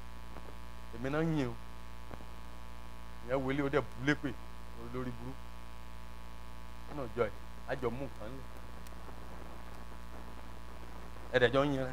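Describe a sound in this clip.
A man speaks through loudspeakers in short bursts.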